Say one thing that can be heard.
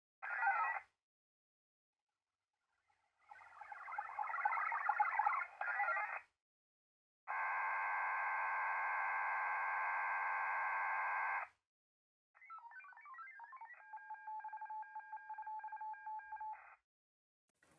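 Digital radio signals buzz and warble in short bursts through a small loudspeaker.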